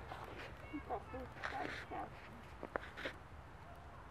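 A young man talks briefly nearby.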